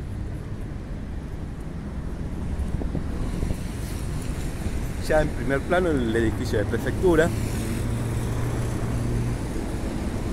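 Traffic rumbles steadily in the distance outdoors.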